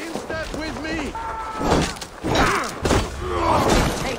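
Weapons clash and clang in a fight.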